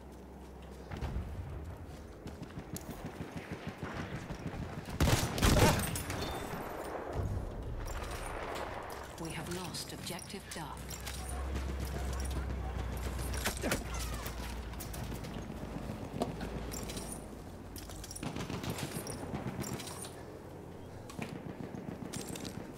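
Footsteps thud quickly on the ground as a soldier runs.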